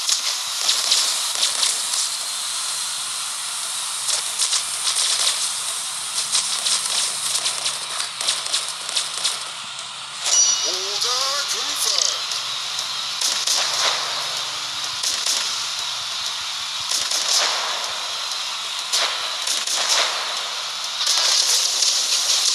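Rapid gunfire and fiery blasts crackle in a game.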